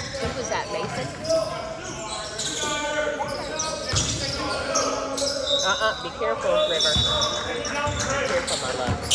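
Young players call out and shout to each other.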